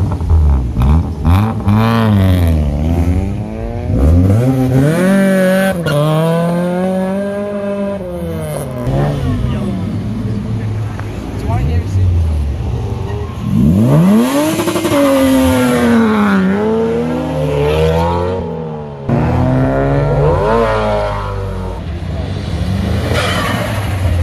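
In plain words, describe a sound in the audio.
Car engines rev hard and roar loudly, rising and falling in pitch as cars pull away one after another.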